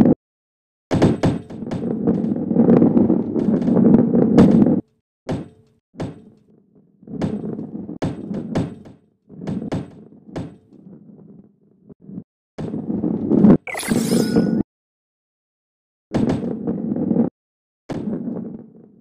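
A ball knocks against the sides of a track.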